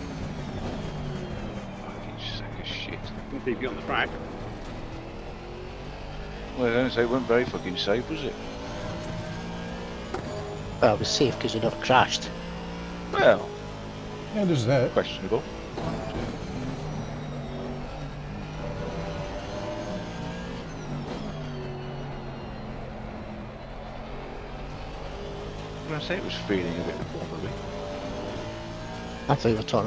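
A racing car engine roars and shifts gears steadily.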